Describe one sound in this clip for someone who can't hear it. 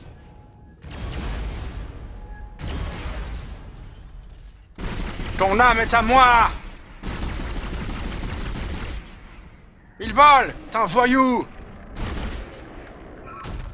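A weapon fires in loud bursts.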